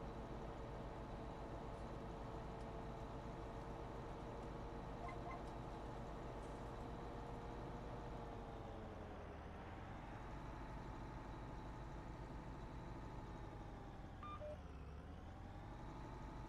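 A tractor engine drones steadily, its pitch dipping and rising as it turns.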